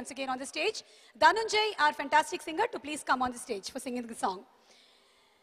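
A young woman speaks with animation into a microphone over loudspeakers.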